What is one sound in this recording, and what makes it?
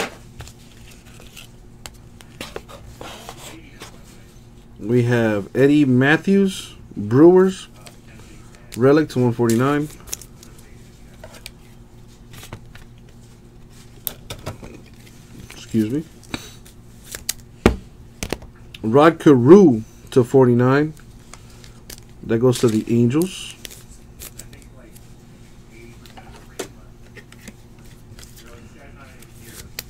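Trading cards rustle and slide against each other and plastic sleeves, close by.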